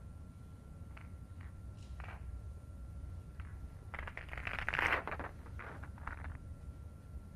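Snooker balls click softly as they are set down on the table.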